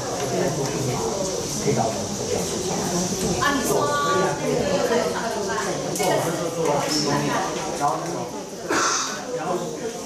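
Several women talk at once in a room with some echo.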